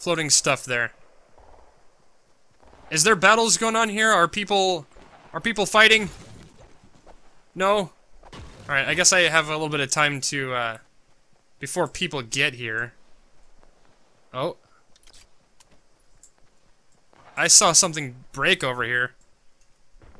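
A man speaks with animation close to a headset microphone, in bursts with pauses.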